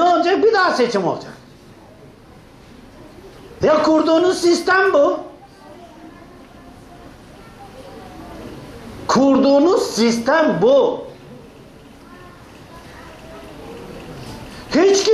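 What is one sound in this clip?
An elderly man speaks with animation, close by, in bursts with pauses.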